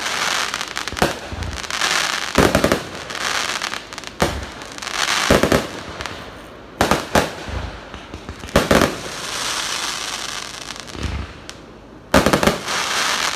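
Fireworks explode with loud bangs.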